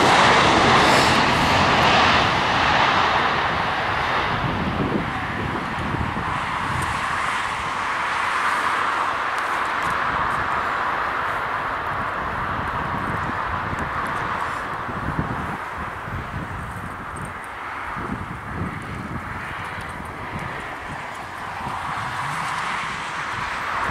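A jet airliner's engines roar loudly as it speeds down a runway and slowly fades into the distance.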